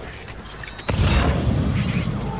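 Gunfire bursts out loudly.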